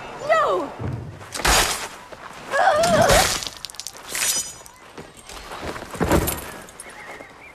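Heavy blows thud and crack.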